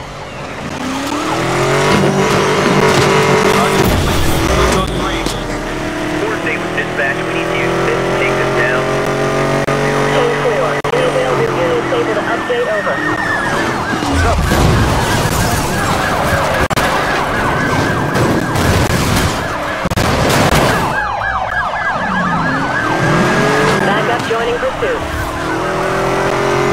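A sports car engine roars and revs up through the gears.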